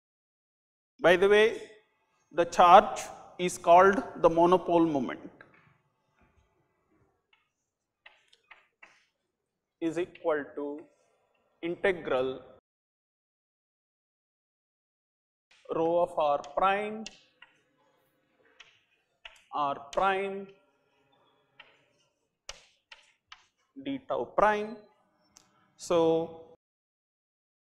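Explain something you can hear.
An elderly man lectures calmly through a clip-on microphone, in short bursts with pauses.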